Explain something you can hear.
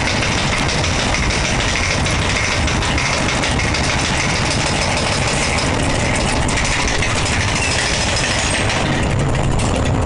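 A roller coaster car clanks and rattles up a chain lift.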